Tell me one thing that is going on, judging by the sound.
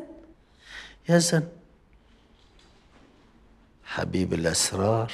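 An elderly man speaks quietly close by.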